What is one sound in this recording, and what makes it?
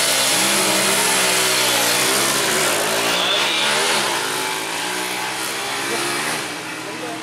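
A motorcycle engine revs loudly and speeds away.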